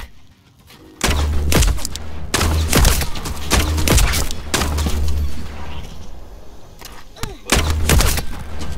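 Gunfire bursts and booms with heavy low thuds.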